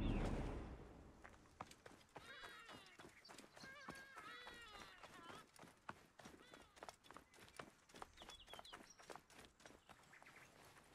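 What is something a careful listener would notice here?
Footsteps run quickly over dry sand and brush.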